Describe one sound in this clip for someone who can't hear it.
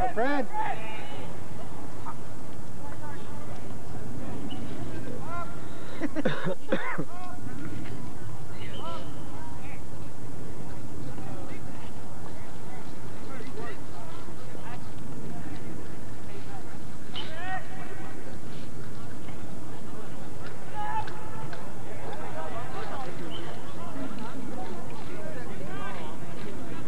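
Young men shout to one another across an open field outdoors.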